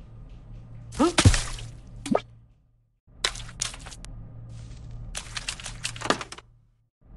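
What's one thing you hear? A tablet game plays short chimes and whooshing effects.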